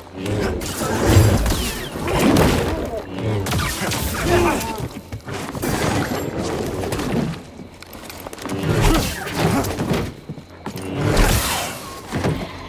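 Blade strikes hit a creature with sharp crackling impacts.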